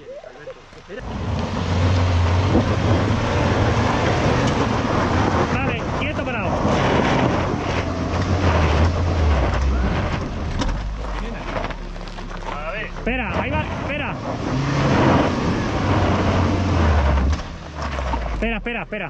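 Tyres crunch and grind over loose gravel and dirt.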